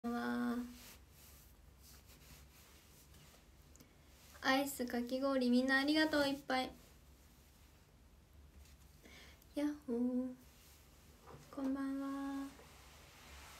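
A young woman speaks softly and close up, in short bursts.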